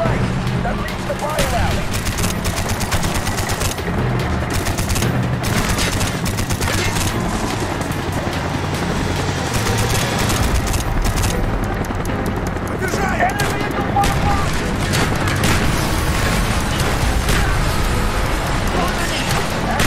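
A twin machine gun fires rapid bursts.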